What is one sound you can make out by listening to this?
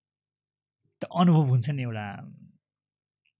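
A second man speaks into a close microphone.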